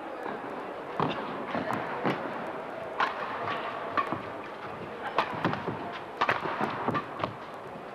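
Badminton rackets smack a shuttlecock back and forth in a sharp rally.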